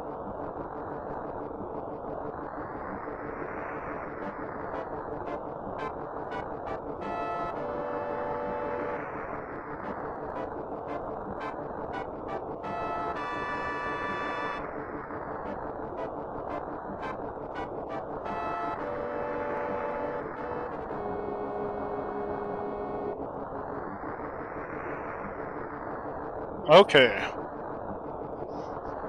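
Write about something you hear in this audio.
Chiptune video game music plays steadily.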